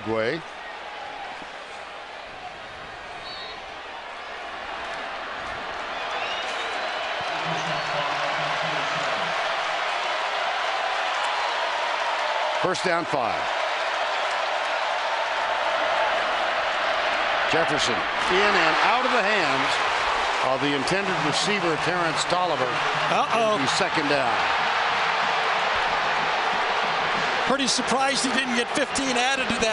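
A large crowd roars in a stadium and grows louder.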